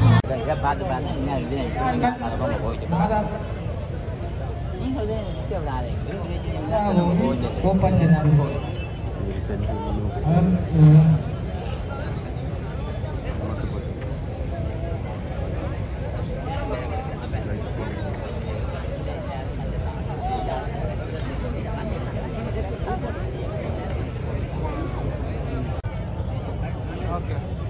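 A crowd murmurs and talks outdoors.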